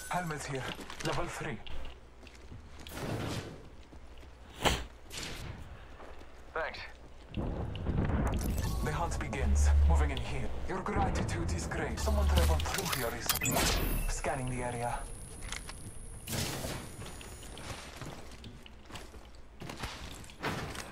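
A young man talks casually into a nearby microphone.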